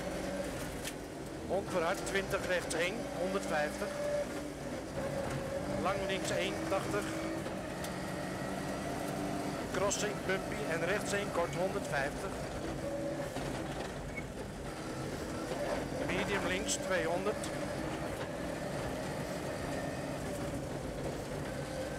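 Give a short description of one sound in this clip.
A rally car engine roars and revs hard at high speed.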